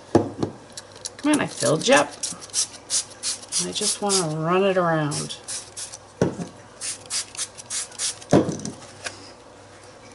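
A spray bottle spritzes in quick short bursts.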